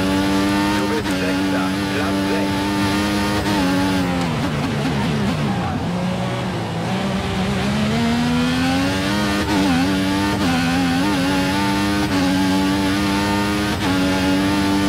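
Gear shifts click as a racing car engine changes pitch.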